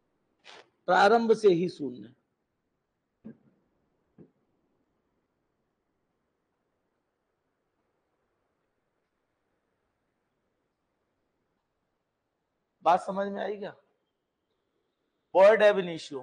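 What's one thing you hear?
A middle-aged man speaks clearly into a microphone, pausing between phrases.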